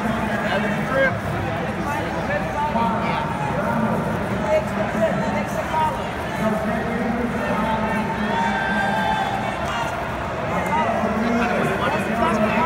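Bare feet shuffle and thud on a mat.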